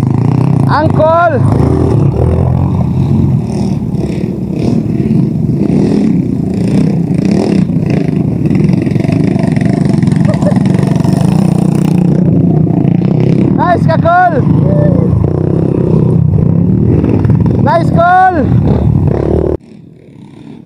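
Dirt bike engines rumble and putter up close.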